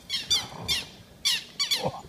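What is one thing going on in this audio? Birds chirp rapidly and repeatedly nearby.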